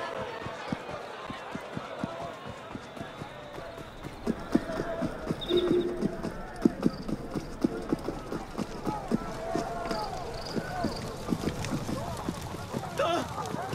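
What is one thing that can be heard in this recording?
Running footsteps tap quickly on cobblestones.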